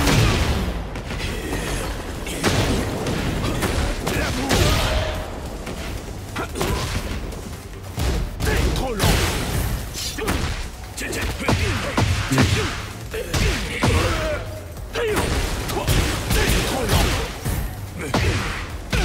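Punches and kicks land with sharp thuds and whooshes.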